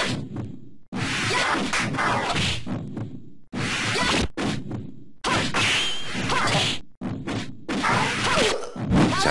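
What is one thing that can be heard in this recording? Magic blasts whoosh and burst.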